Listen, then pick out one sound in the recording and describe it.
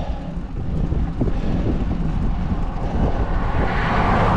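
A car approaches along the road, growing louder.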